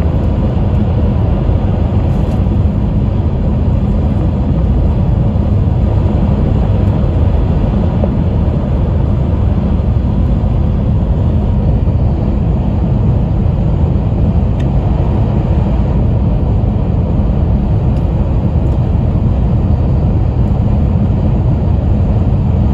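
A train rumbles steadily at speed, heard from inside a carriage.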